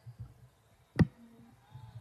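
A basketball bangs sharply against a hoop.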